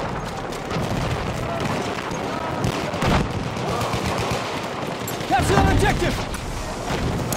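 Gunshots crack repeatedly nearby.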